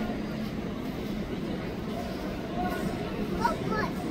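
A young boy laughs.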